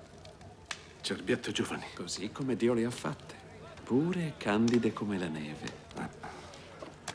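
An older man speaks calmly in a low voice.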